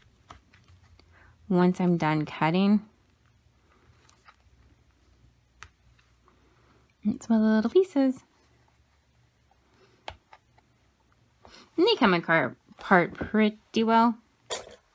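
Stiff paper crinkles softly as hands fold it.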